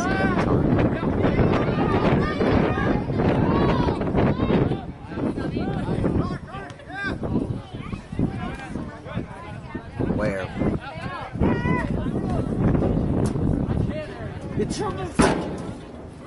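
Young men shout and call to each other outdoors across an open field.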